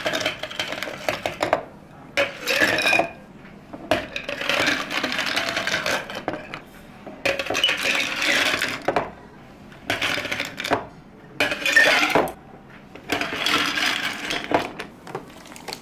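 Ice cubes clatter and rattle as they are dropped into glasses.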